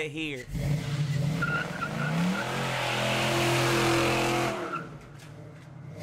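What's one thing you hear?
A truck engine revs loudly and roars away.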